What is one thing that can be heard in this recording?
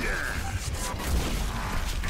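An explosion bursts with a roaring blast of fire.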